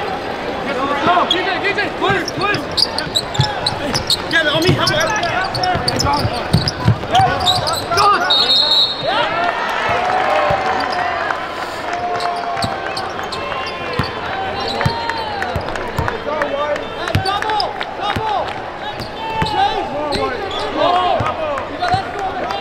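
Sneakers squeak sharply on a hardwood floor.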